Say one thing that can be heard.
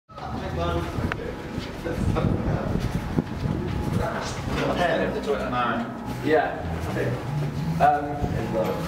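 A brass band plays a lively tune, with horns and a saxophone.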